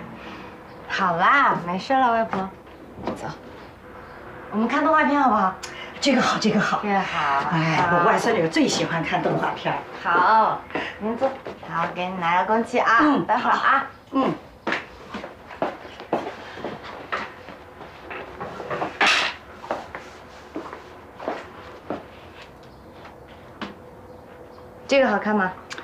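A young woman speaks cheerfully and warmly, close by.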